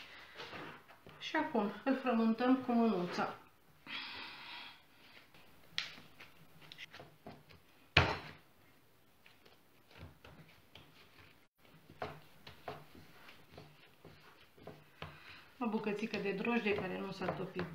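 Dough thumps and slaps on a wooden board as it is kneaded.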